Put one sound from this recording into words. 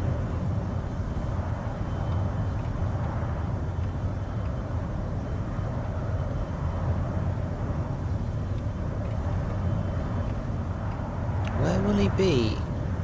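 Wind rushes past a cockpit canopy.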